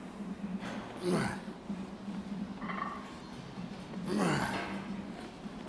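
A man breathes out hard with effort.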